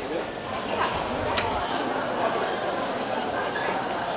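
Glass bottles clink on a table.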